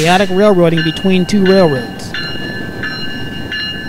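A diesel locomotive rumbles as it rolls past.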